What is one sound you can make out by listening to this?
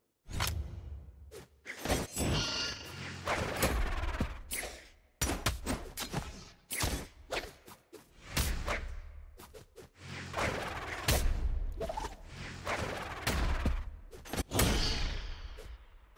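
Fighters in a video game clash with sharp hits and whooshes.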